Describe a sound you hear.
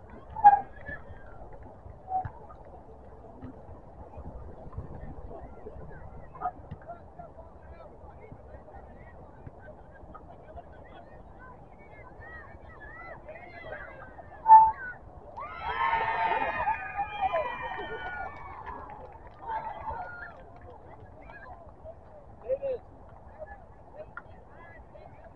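Players shout to each other outdoors, some distance away.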